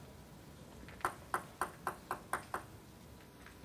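A table tennis ball bounces a few times on a table before a serve.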